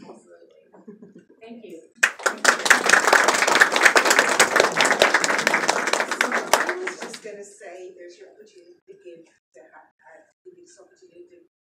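A woman speaks at a distance in a room, heard faintly.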